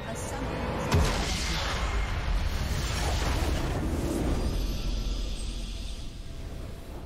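Triumphant orchestral music swells and plays on.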